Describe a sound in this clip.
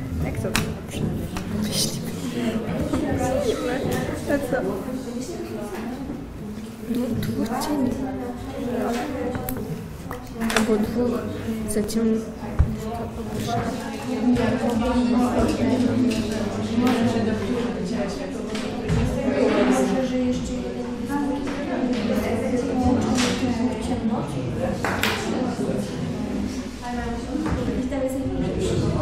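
Several children and teenagers chatter and talk at once nearby.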